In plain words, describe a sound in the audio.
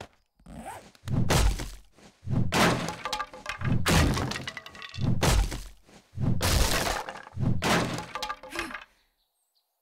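An axe chops into wooden planks.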